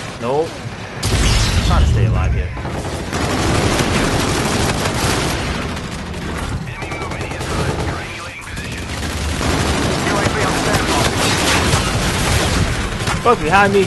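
Rifle gunfire crackles in rapid bursts.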